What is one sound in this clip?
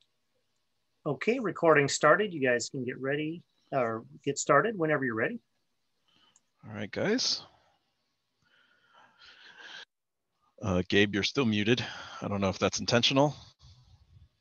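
A man speaks calmly over an online call, in bursts with pauses.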